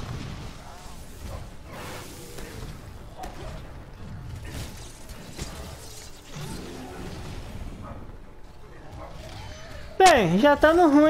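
A huge creature stomps and crashes in battle.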